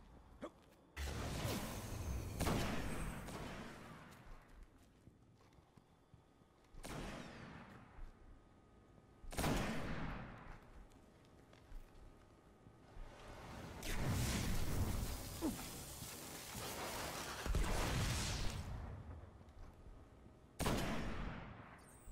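A sniper rifle fires loud booming shots that echo and fade away.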